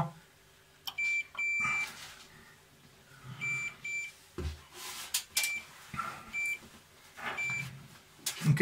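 A multimeter beeps in short high bursts.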